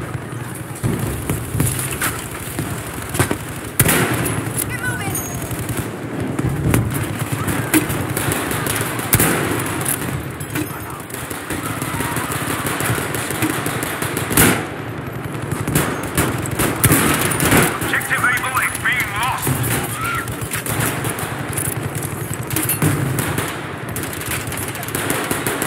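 Gunshots crack and boom again and again, with loud echoes.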